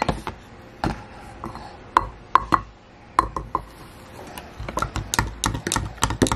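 A spoon clinks against a glass while stirring.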